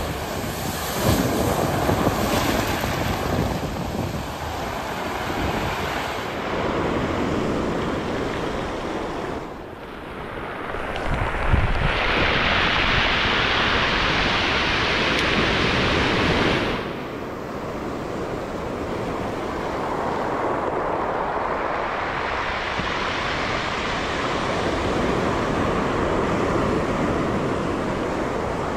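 Surf waves break and wash over a pebble beach.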